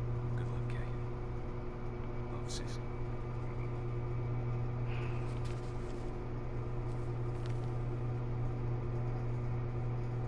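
Paper rustles as a sheet is handled.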